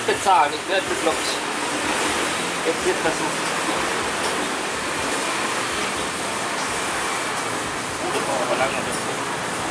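A middle-aged man speaks briefly nearby.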